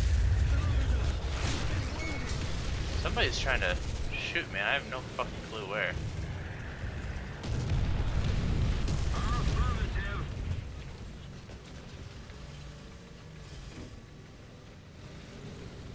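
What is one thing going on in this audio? A tank engine rumbles low and heavily.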